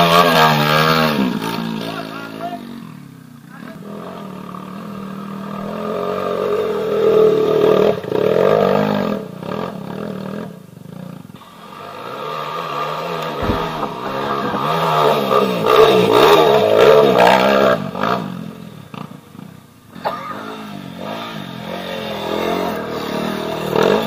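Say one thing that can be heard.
A dirt bike engine revs and roars up a nearby slope.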